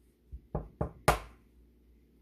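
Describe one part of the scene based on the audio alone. A small glass cup clinks against a metal bowl.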